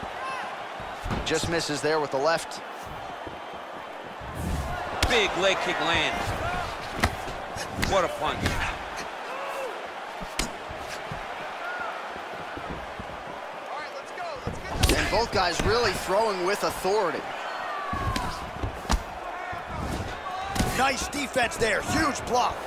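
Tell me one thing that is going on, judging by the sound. Punches and kicks thud against a body.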